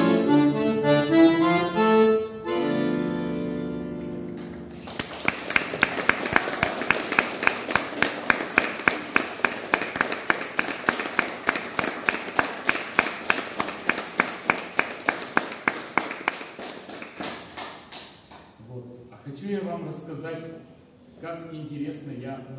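An accordion plays a lively tune up close.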